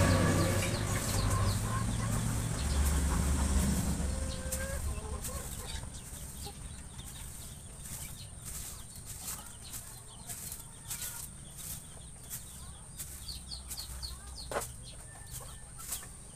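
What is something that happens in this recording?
A wire cage rattles and clicks as it is handled.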